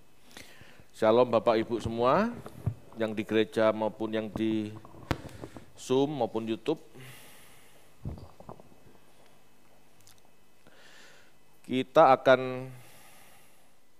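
A man speaks calmly through a headset microphone, with pauses.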